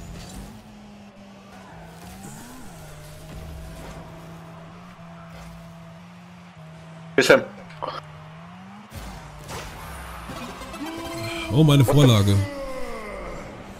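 A video game car boosts with a rocket-like whoosh.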